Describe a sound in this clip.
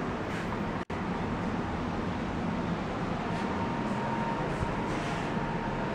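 Elevator doors slide open and shut.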